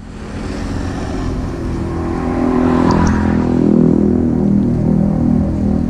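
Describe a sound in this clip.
A truck's diesel engine rumbles close by and grows louder as it pulls forward.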